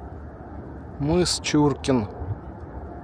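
A gull calls several times overhead.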